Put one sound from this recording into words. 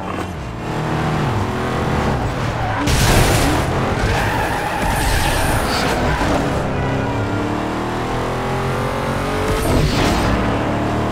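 A racing car engine roars and revs loudly.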